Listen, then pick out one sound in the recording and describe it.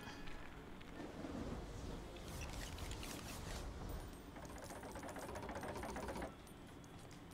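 A magical shimmering whoosh hums as blocks float into place.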